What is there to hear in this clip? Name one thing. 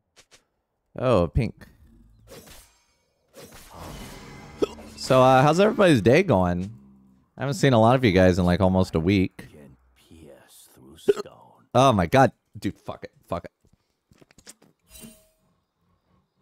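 A young man talks and exclaims with animation, close into a microphone.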